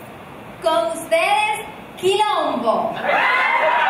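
A woman speaks into a microphone with animation.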